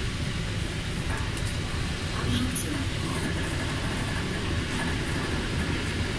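A man talks nearby in a low voice.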